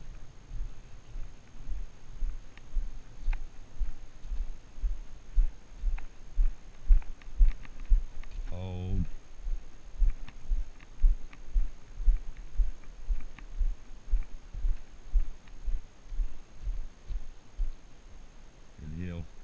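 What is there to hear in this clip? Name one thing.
Footsteps crunch steadily on a dirt and gravel path outdoors.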